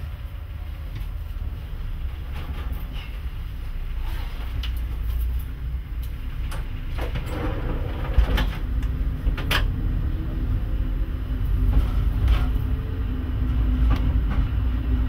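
Train wheels clack over rail joints and points.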